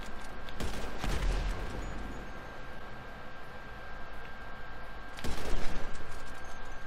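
A rifle shot booms and echoes.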